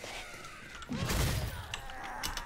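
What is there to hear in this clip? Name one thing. A heavy blow lands with a wet thud.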